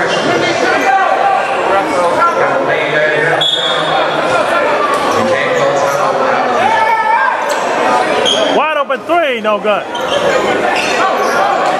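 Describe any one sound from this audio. A crowd talks and cheers in a large echoing gym.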